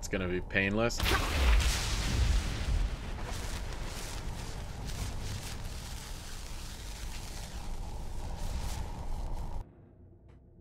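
A magical rushing roar surges and swirls, then cuts off.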